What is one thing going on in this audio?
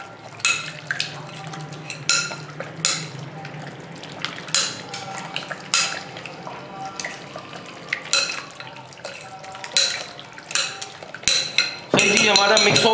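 Thick batter squelches as it is stirred.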